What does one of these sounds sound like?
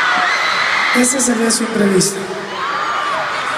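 A young man speaks into a microphone, heard through loudspeakers.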